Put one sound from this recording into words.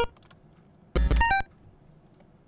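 A short chiptune jingle beeps quickly up and down.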